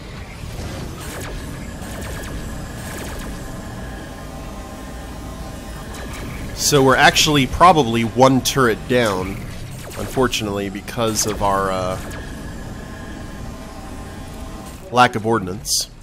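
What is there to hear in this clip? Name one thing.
Laser guns zap repeatedly.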